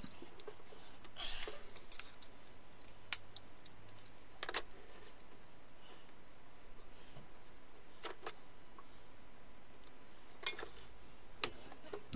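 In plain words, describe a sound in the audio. Sharp clicks and knocks sound as tools are handled on wood.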